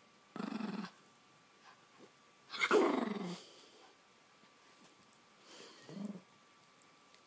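A small puppy growls and yips playfully.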